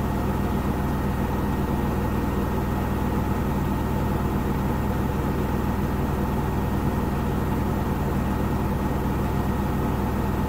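A front-loading washing machine's drum turns with a steady motor hum.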